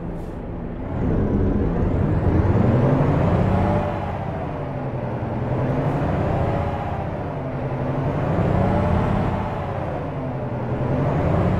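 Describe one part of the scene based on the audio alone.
A truck engine revs up and down repeatedly.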